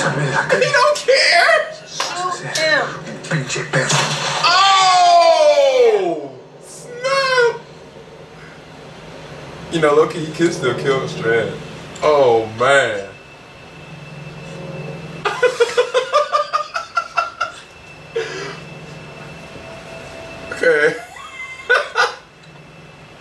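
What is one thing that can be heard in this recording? A young man exclaims and laughs loudly with animation.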